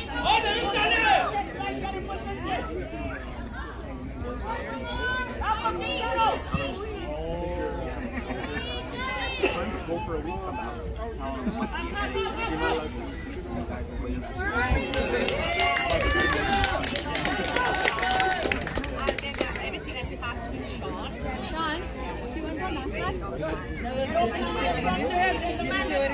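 Young players shout and call to each other outdoors.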